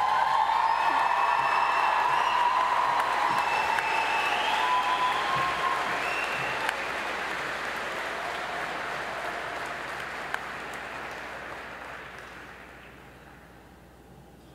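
An audience applauds and cheers in a large echoing hall, then the applause fades away.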